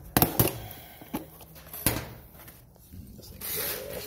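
A metal case clicks and rattles as a hand opens it.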